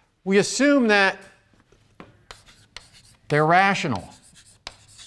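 A man speaks calmly through a microphone in short phrases.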